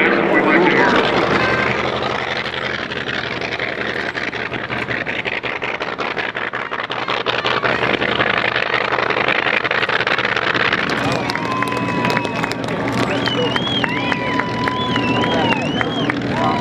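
A propeller plane's engine rumbles steadily close by on the ground.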